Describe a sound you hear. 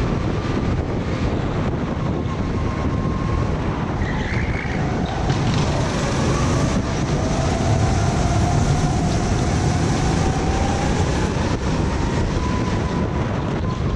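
Go-kart engines whine and buzz loudly close by.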